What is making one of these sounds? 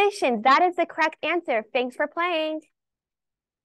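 A girl speaks brightly into a phone handset, close and clear.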